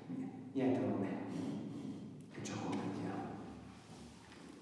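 A middle-aged man speaks calmly into a microphone in an echoing hall.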